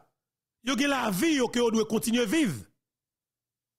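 A man speaks with animation into a microphone, close up.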